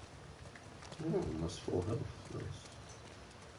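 A man speaks casually into a microphone, close up.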